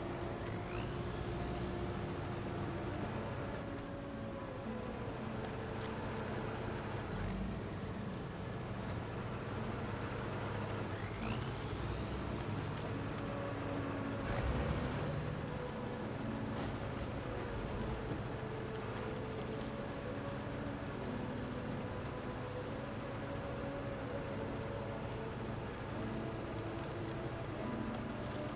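Tyres crunch over snow and rocks.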